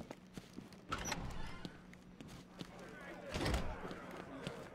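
A heavy metal door clanks open.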